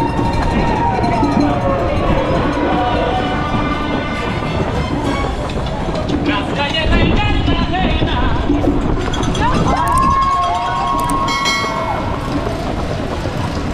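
Many running shoes slap steadily on pavement.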